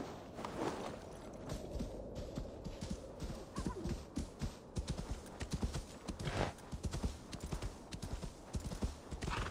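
A horse's hooves crunch steadily through snow.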